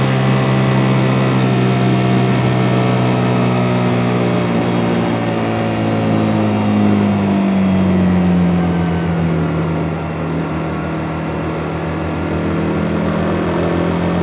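A motorcycle engine hums steadily up close, dropping in pitch as the rider eases off.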